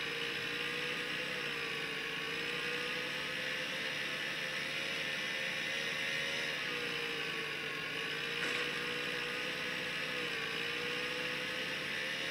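Game music plays through a small phone speaker.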